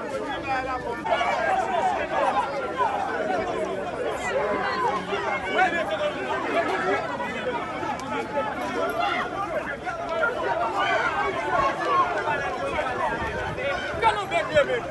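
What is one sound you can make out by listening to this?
A crowd of men and women shout and talk excitedly outdoors.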